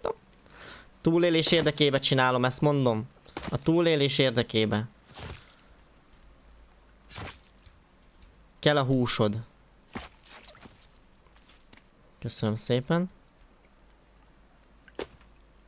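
An axe strikes with dull thuds.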